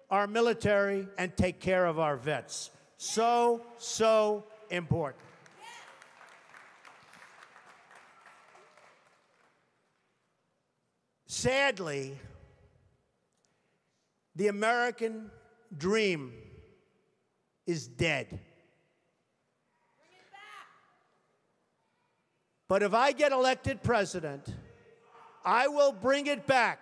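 An elderly man speaks emphatically into a microphone, pausing between phrases.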